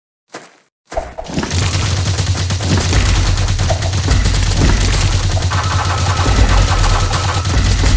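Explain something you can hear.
Rapid blasts and explosions crackle loudly.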